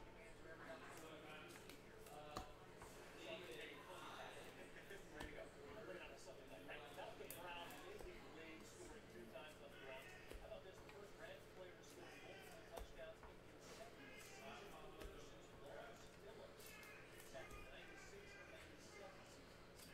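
Trading cards slide and click against each other as a hand shuffles them.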